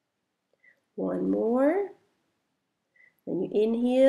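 A woman speaks calmly and softly, close by.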